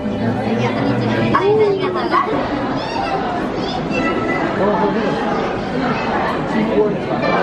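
A crowd of people chatters around in a large echoing hall.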